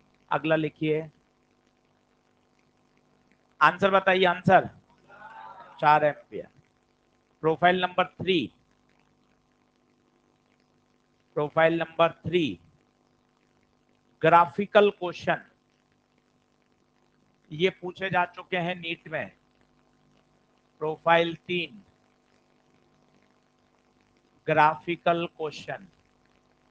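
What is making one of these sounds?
A man speaks into a close microphone in short, measured phrases with pauses between them.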